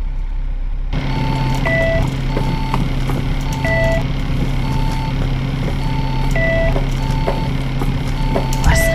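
A door chime beeps in a repeating two-tone pattern.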